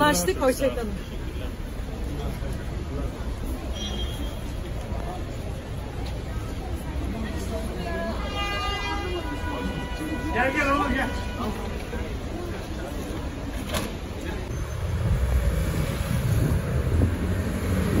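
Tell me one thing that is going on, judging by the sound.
A crowd's footsteps and street noise go on outdoors.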